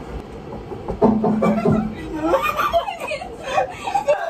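A young man laughs loudly up close.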